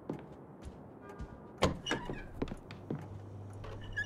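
A door opens and closes with a knock.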